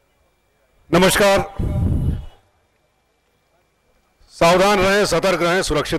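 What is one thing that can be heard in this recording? A younger man speaks forcefully into a microphone over a loudspeaker.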